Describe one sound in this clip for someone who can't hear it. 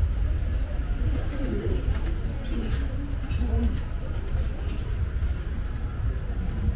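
People chatter faintly at nearby tables.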